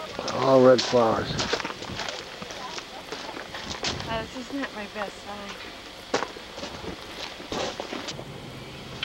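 An adult woman talks nearby outdoors.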